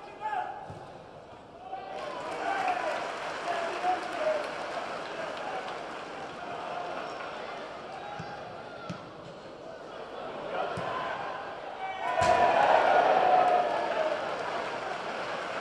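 A large stadium crowd murmurs and chants steadily outdoors.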